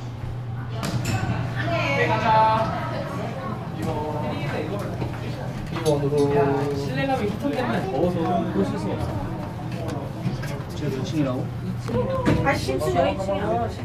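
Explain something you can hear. A finger taps an elevator button.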